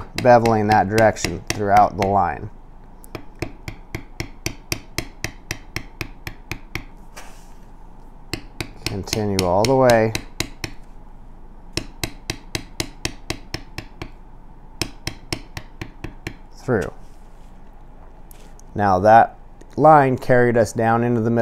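A metal stamping tool is tapped rapidly and steadily against leather.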